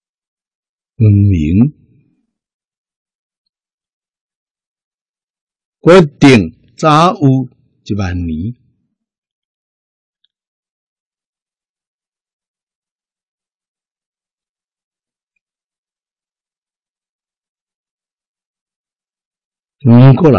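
An elderly man speaks calmly and slowly into a microphone, in short phrases with long pauses.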